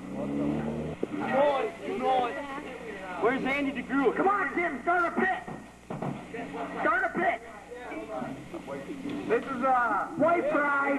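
Young men and women talk and call out close by.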